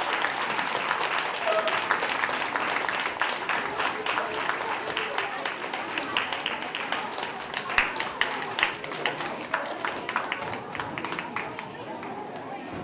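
An audience of children claps and cheers loudly in a large echoing hall.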